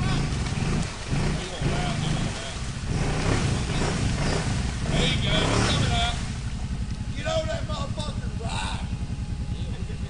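Water splashes and churns around a wading vehicle.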